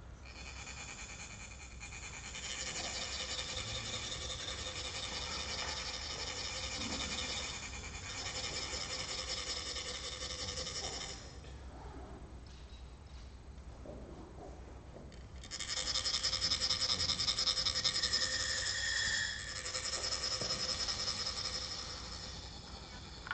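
Metal funnels rasp steadily as sand is scraped out.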